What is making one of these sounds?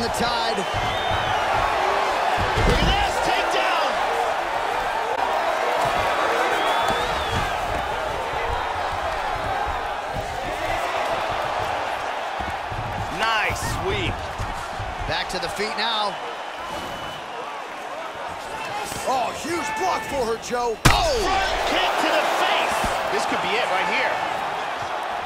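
A large crowd murmurs and cheers steadily in a big arena.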